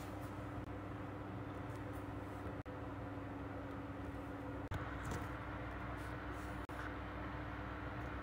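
Fingers rub and bump against a phone's microphone.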